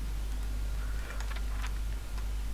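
A paper page flips over.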